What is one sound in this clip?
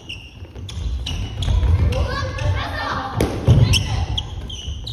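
Young men and women shout and call out to each other during play.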